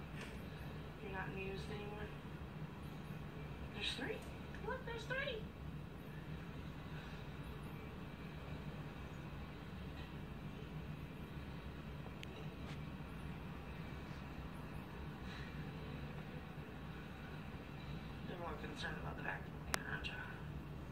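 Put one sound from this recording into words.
A cat meows through a television speaker.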